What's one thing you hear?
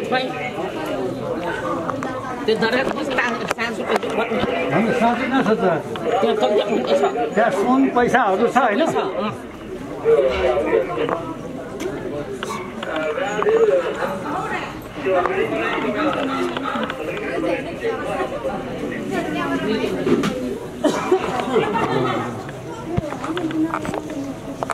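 A middle-aged man talks on a phone close by, calmly.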